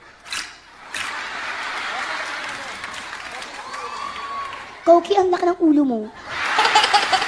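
A studio audience laughs and cheers.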